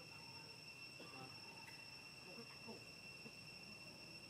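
Young monkeys squeak and chatter nearby.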